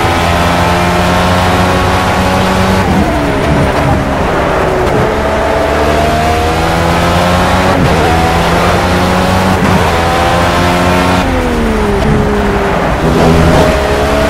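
A racing car engine screams at high revs, dropping in pitch on each gear change and climbing again.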